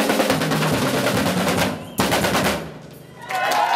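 A youth band plays marimbas, drums and brass outdoors.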